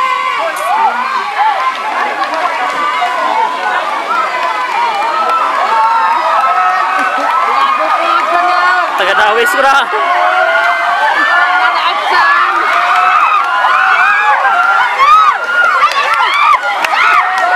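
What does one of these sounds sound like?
A swimmer splashes through rushing water.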